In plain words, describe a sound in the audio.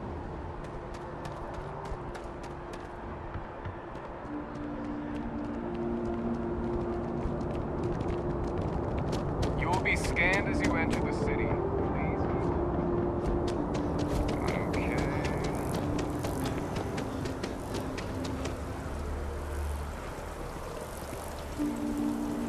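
Footsteps tap steadily on a hard floor.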